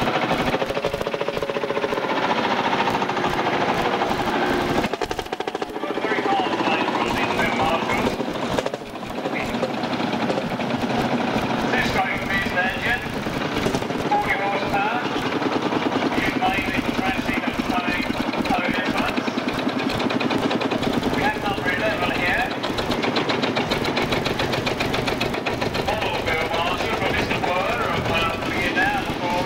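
Old tractor engines chug and putter close by.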